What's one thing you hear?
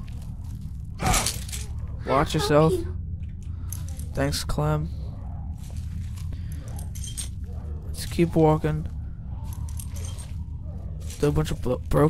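A man groans and grunts with effort.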